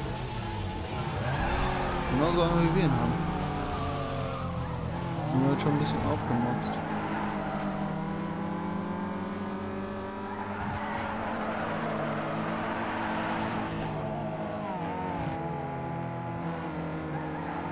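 A car engine revs loudly and steadily.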